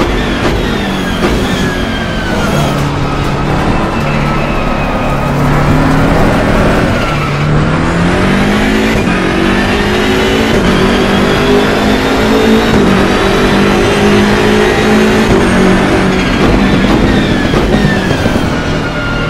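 A racing car engine roars loudly, rising and falling in pitch as it shifts gears.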